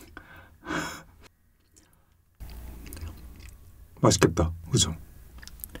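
Melted cheese stretches and squelches softly as pizza is lifted.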